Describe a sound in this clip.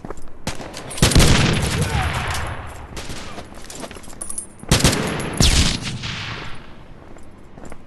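Loud explosions boom and rumble away.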